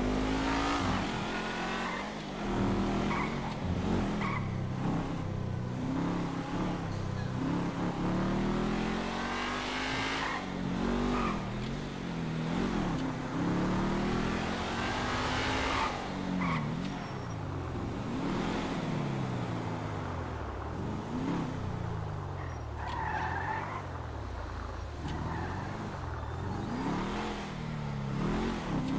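A sports car engine revs up and down as the car speeds along.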